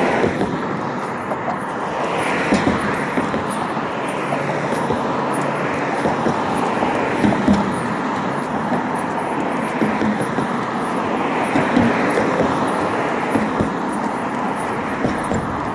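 Cars pass by close on a road, their tyres rushing over the pavement.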